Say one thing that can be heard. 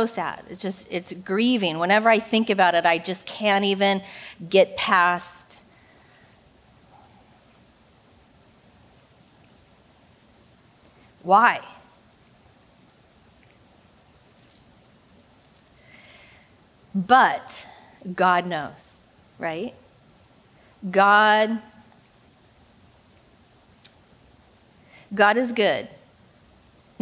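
A young woman speaks calmly through a microphone, with long pauses, in a large echoing hall.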